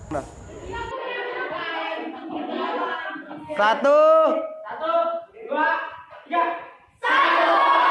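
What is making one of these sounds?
A group of young people speak together in unison, close by.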